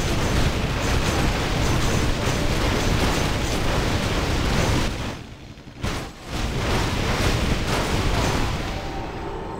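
Weapons clash and spells burst in a noisy fantasy battle.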